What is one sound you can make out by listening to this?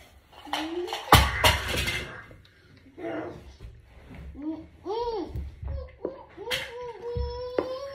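A child gulps a drink.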